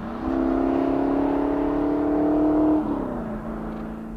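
Tyres crunch and skid over loose dirt.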